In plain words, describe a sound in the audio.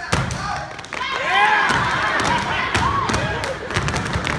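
An audience cheers and whoops loudly.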